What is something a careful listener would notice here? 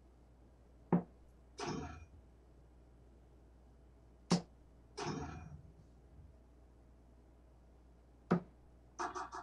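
Darts thud sharply into a board.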